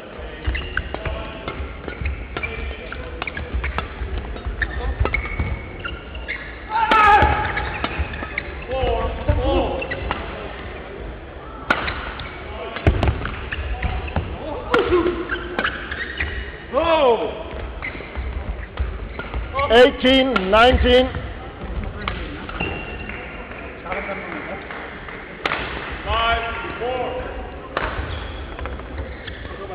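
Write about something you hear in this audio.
Rackets smack a shuttlecock back and forth in an echoing hall.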